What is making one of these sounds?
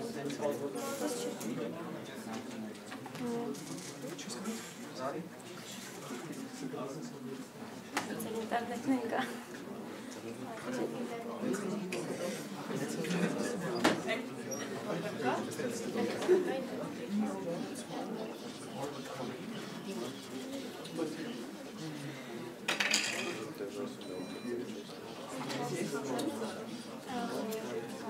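A young man speaks calmly to a room, slightly distant and echoing.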